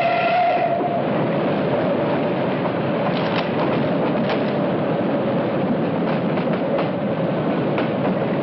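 Stiff paper crinkles and rustles in a man's hands.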